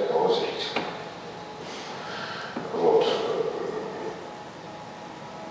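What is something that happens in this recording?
A middle-aged man speaks calmly through a microphone in a reverberant room.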